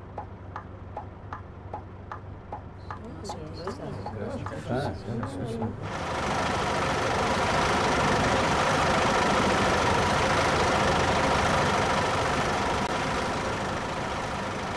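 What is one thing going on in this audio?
A bus engine hums at low speed.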